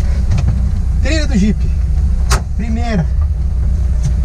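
A man laughs and talks close by.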